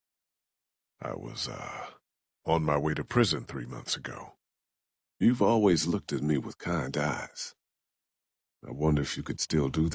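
A young woman speaks in a serious, firm tone.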